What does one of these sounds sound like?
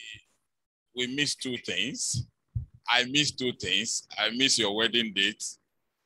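A man speaks with animation into a microphone through a loudspeaker.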